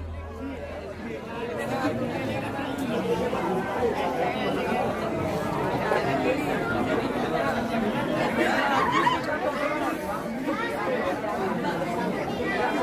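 A crowd of young men and women chatters all around, close by.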